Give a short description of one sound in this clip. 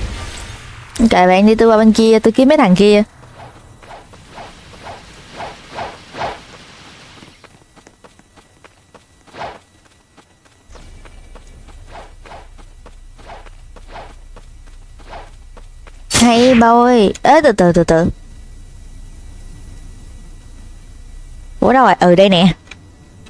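A young woman speaks with animation into a headset microphone, close by.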